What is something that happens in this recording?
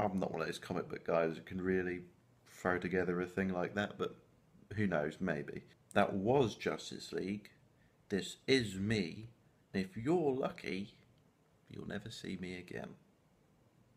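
A young man talks with animation, close to the microphone.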